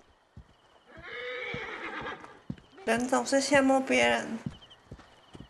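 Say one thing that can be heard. A young woman talks close to a microphone with animation.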